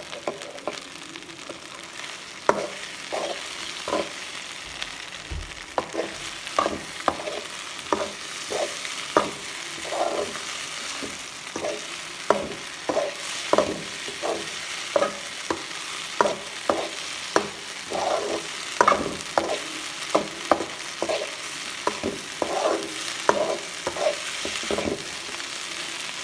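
A metal spatula scrapes and clacks against a pan over and over.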